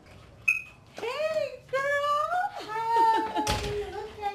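A young woman greets someone cheerfully nearby.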